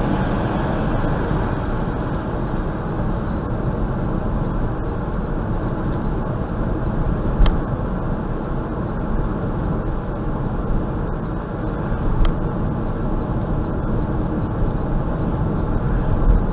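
Tyres roar steadily on the road inside a moving car.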